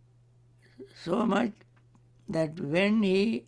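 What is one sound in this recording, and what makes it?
A man chants slowly through a microphone.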